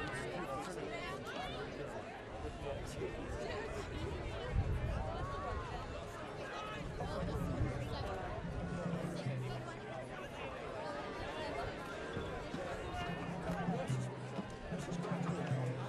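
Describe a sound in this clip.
A large crowd chatters outdoors in the stands.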